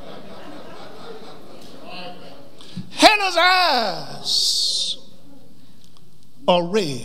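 A man preaches with feeling into a microphone in an echoing hall.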